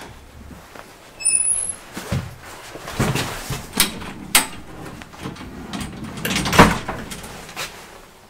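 A metal lift gate rattles and clanks as it is pulled open.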